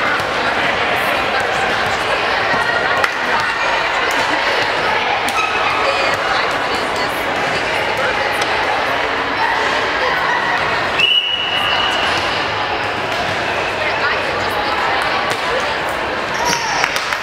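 A crowd chatters steadily in a large echoing gym.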